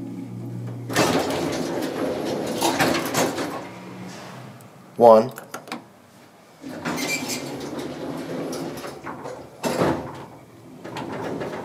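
Elevator doors slide open and closed with a rumble.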